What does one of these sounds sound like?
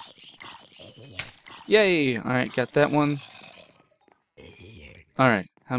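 A sword strikes a zombie with dull thuds.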